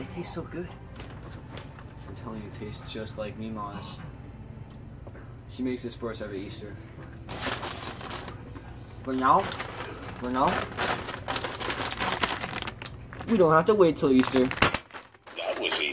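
A chip bag crinkles and rustles loudly.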